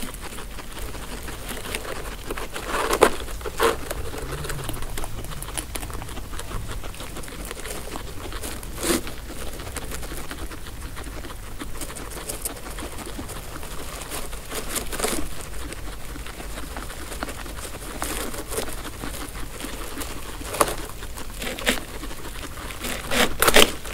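Dry hay rustles as guinea pigs tug at it.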